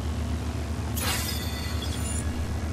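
A soft whoosh sounds as a game menu switches.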